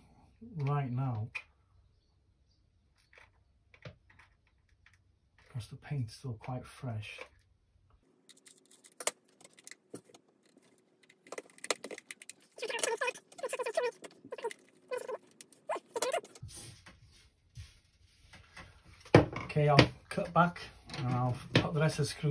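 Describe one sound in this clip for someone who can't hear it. Small plastic parts click and tap as they are handled and pried apart.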